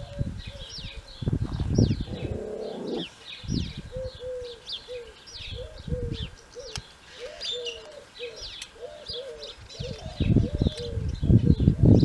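Metal clinks softly as a horseshoe and nails are handled.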